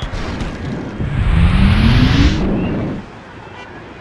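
A giant creature leaps with a whooshing rush of air.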